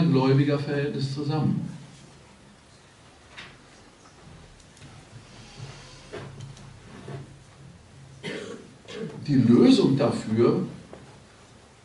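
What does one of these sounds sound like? An elderly man speaks with animation into a microphone, in short bursts with pauses.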